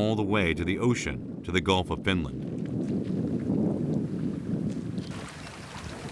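Water splashes around a swimmer.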